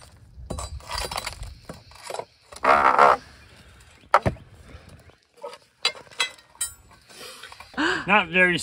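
A metal bar scrapes and knocks against concrete.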